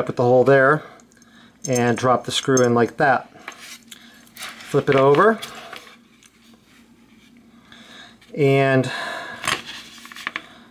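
Metal chain links clink and click against each other.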